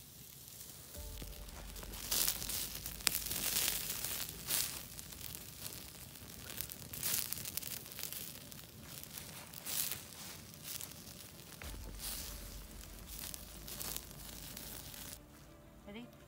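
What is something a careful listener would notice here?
Flames roar and whoosh in a strong fire.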